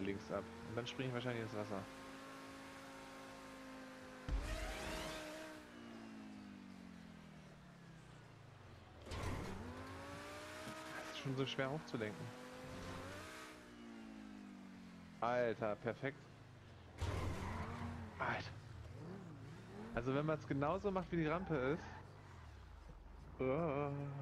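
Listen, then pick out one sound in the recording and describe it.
A sports car engine revs and roars, rising and falling in pitch.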